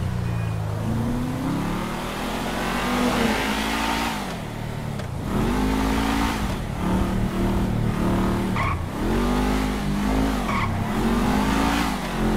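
A car engine revs hard, rising and dropping in pitch with each gear change.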